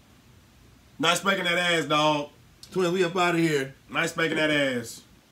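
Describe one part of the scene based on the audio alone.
A young man sings loudly, close by.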